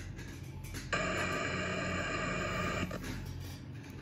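A harsh electronic static hiss plays from a game.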